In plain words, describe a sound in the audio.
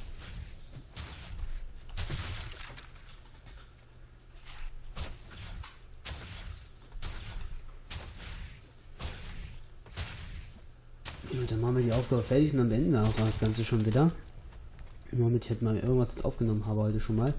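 Weapons clash and strike in combat.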